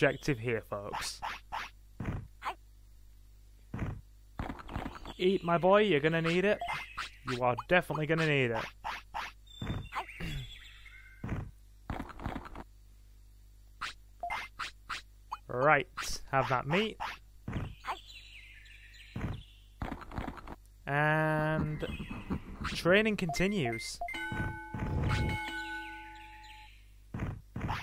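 Short electronic blips click in quick succession.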